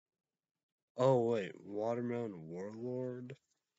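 A young man speaks close to a microphone in a drawn-out, singsong voice.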